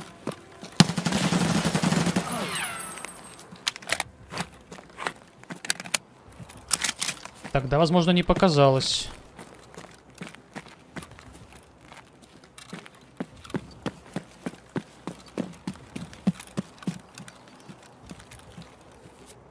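Footsteps crunch on gravel at a steady pace.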